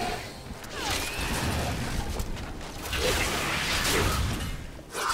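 Fiery spell blasts burst and crackle.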